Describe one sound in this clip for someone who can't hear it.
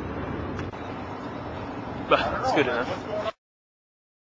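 A young man speaks close by, casually.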